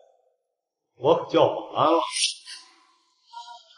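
A young man speaks loudly and brashly.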